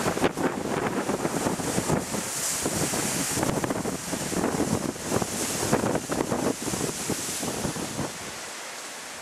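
Strong wind roars and buffets through the leaves.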